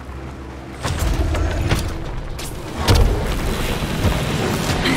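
A laser beam blasts with a loud, harsh roar.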